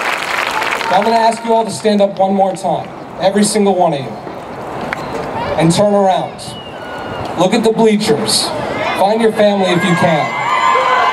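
A man speaks steadily through a loudspeaker outdoors, with echo.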